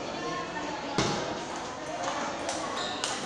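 A table tennis ball clicks back and forth off paddles and a table.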